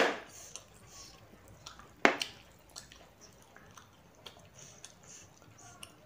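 Fingers squish and mix moist rice on a plate.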